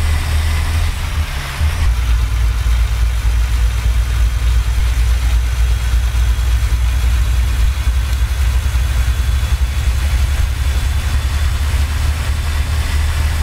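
Tyres roll on a highway with a steady hiss.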